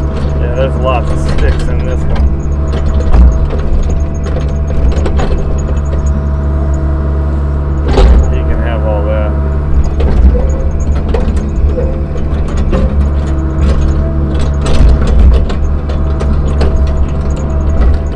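An excavator bucket scrapes and knocks against dirt and rocks.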